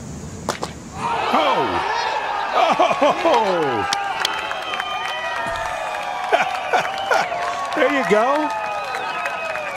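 A crowd outdoors cheers, whoops and whistles loudly.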